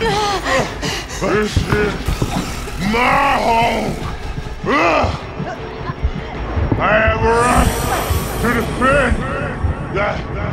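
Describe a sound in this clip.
An elderly man growls and speaks menacingly, close by.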